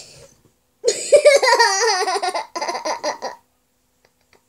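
A young boy laughs close to the microphone.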